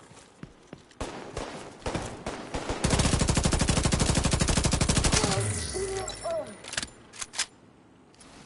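Single gunshots crack now and then.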